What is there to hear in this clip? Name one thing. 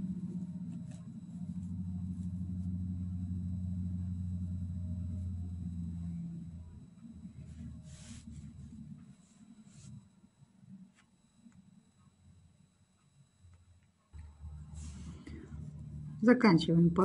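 Yarn rustles softly as a crochet hook pulls it through loops.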